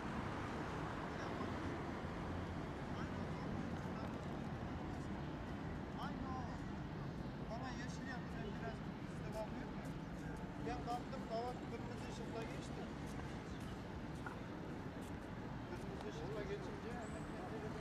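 Traffic rumbles steadily in the distance outdoors.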